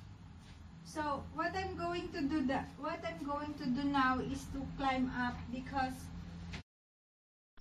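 A woman speaks nearby in a calm, conversational voice.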